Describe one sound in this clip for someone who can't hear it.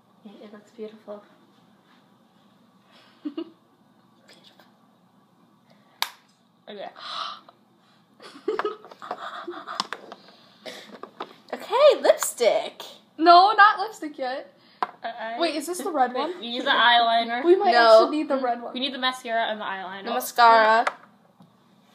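A second teenage girl talks and giggles close by.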